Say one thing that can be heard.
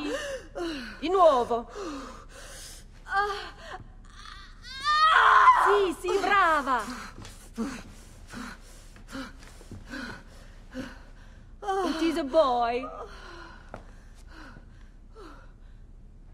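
A woman speaks calmly and encouragingly.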